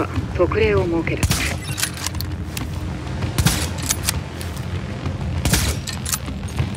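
Rifle shots crack sharply.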